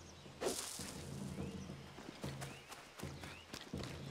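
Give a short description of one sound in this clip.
Footsteps crunch through dry leaves and grass.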